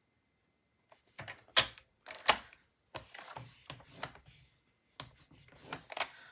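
A trimmer blade clicks and rasps as it slides along the rail.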